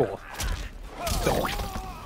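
A fiery blast bursts with a roar.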